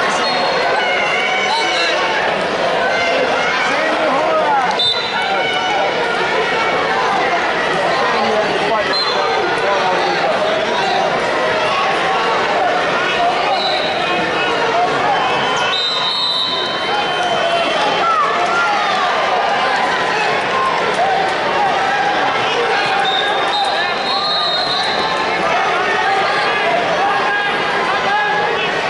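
A large crowd chatters and calls out, echoing in a big hall.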